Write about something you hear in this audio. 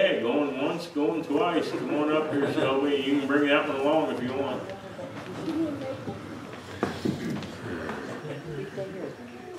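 An elderly man speaks into a microphone, heard through loudspeakers in a large echoing room.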